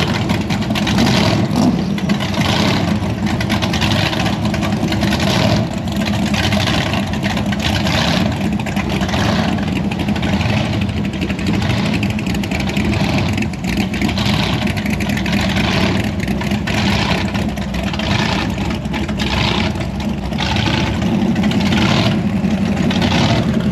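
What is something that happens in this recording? A car engine rumbles loudly with a rough, lumpy idle.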